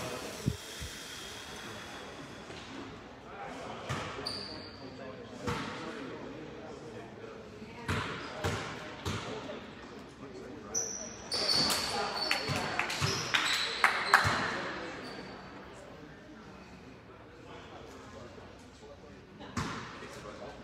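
A basketball bounces on a wooden floor with thuds that echo.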